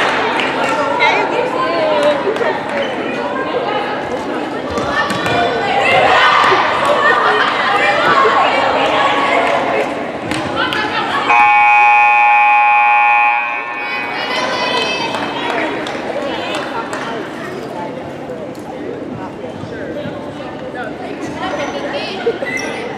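Volleyballs thump as players hit and pass them.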